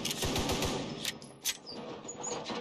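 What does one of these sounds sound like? A pistol's metal parts click sharply.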